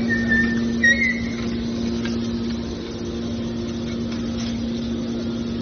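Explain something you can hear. A hydraulic baling machine hums steadily.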